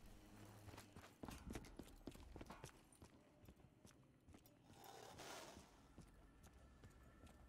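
Footsteps tread on a hard floor in a game.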